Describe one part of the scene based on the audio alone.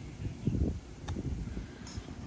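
A golf club thumps into sand.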